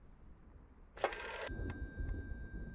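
An old telephone rings loudly.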